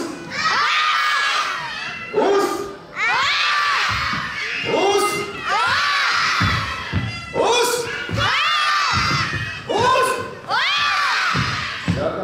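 A man shouts dramatically through a microphone in an echoing hall.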